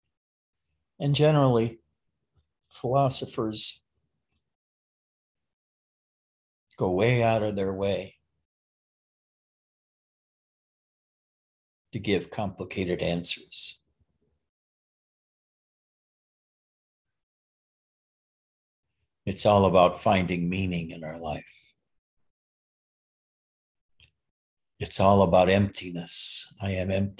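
An elderly man speaks calmly and close to the microphone, with long pauses.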